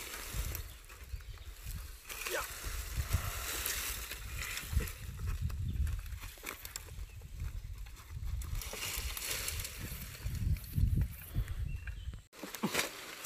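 Dry branches rustle and scrape as they are dragged over the ground.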